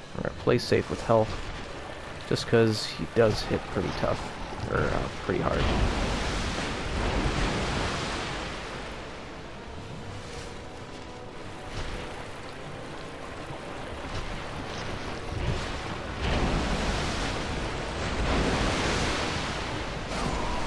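Water splashes and churns heavily.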